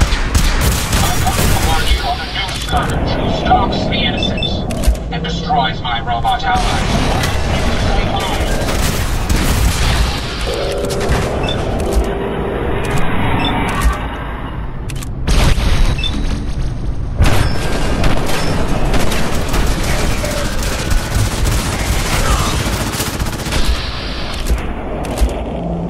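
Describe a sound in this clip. Laser guns fire in rapid zapping bursts.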